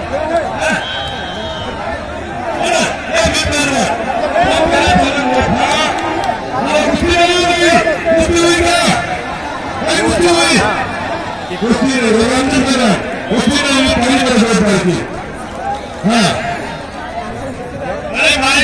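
A large outdoor crowd cheers and shouts loudly.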